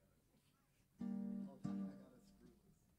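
A man strums an acoustic guitar.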